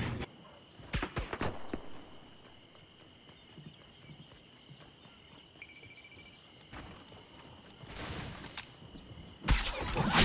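Footsteps patter quickly on grass and pavement.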